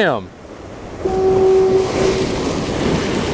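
Waves crash and surge against rocks.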